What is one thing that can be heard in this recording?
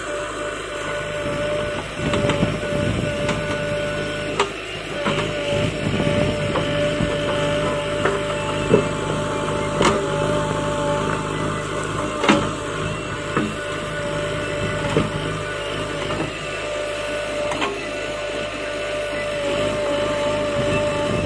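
A digger bucket scrapes and thuds into earth and roots.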